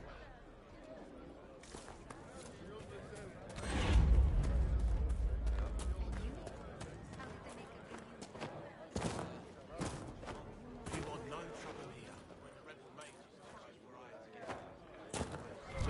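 Footsteps tread on soft ground.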